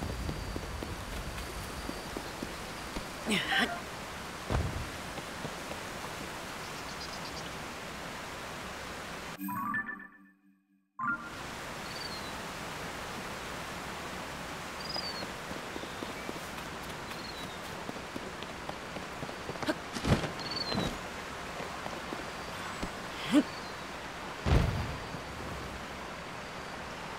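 Footsteps brush through grass.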